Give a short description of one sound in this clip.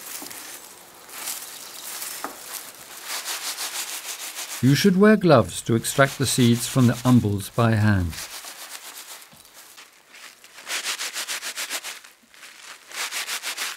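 Dry plant stems rustle and crackle as gloved hands handle them.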